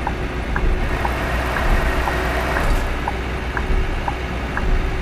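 A turn signal ticks evenly.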